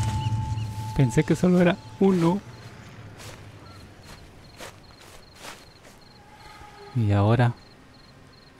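A man calls out loudly in short bursts.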